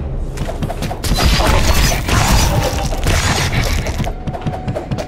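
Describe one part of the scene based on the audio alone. Blades slash and strike in quick, repeated hits.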